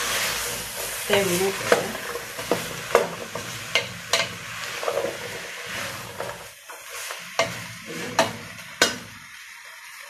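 A wooden spoon scrapes and knocks against a metal pot while food is stirred.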